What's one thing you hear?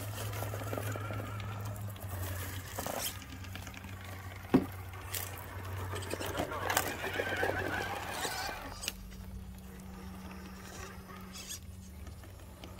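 A small electric motor whines steadily as a toy truck crawls.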